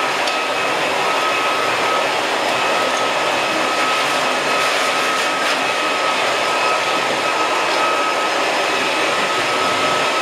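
A vacuum cleaner drones steadily nearby.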